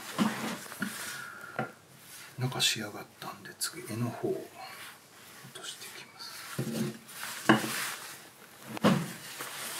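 A knife shaves thin curls from a wooden spoon.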